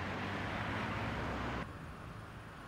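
A vehicle rushes past close by.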